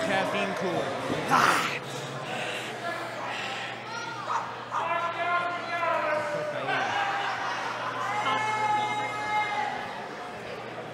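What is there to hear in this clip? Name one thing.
A young man taunts loudly and with animation, close by.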